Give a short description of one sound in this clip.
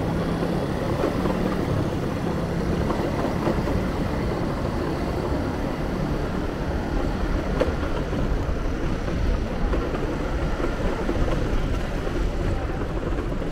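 Scooter engines buzz along a narrow street.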